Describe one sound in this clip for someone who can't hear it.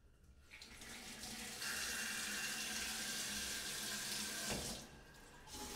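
Water runs from a shower tap and then stops.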